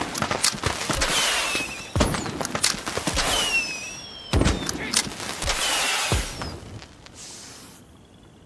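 Heavy gunfire and explosions boom in quick bursts.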